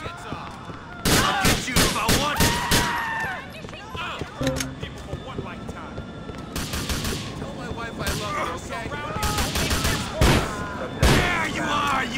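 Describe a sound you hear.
A pistol fires several loud shots.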